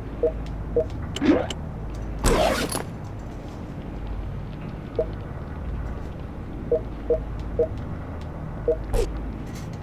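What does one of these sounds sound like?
Short electronic beeps chime as menu selections change.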